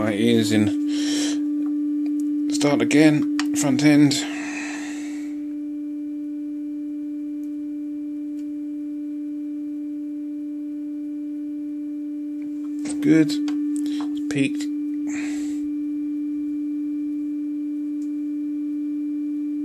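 A valve radio hums with a low, steady tone.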